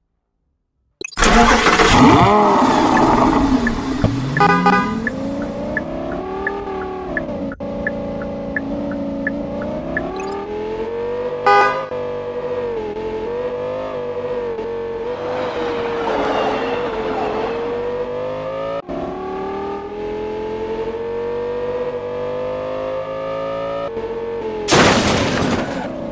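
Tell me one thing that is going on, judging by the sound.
A sports car engine starts and roars, rising in pitch as it speeds up.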